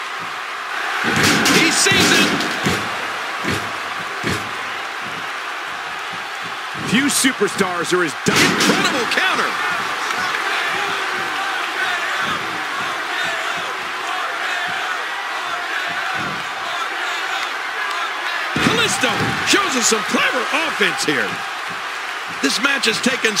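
A crowd cheers and roars throughout.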